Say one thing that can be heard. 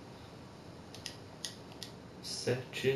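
Short menu ticks click as the selection moves.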